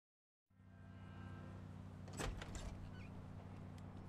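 Doors bang open.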